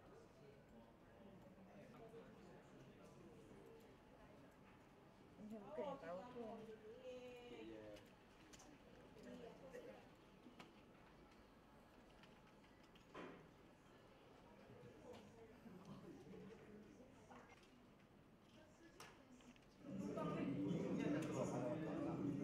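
Fingers tap on a computer keyboard.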